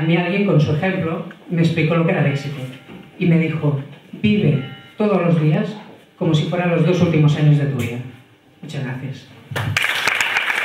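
A man speaks with animation into a microphone over loudspeakers in an echoing hall.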